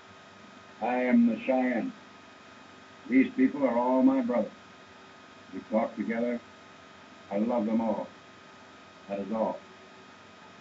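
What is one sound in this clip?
An elderly man speaks slowly in short phrases with long pauses.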